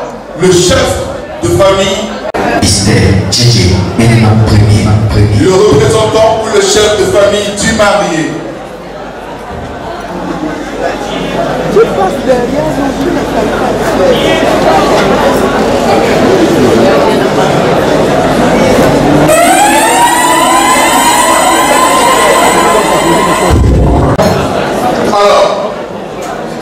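A crowd of people murmurs and chatters in a large room.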